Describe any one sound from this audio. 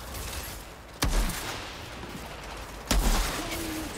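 A rifle fires sharp, loud single shots.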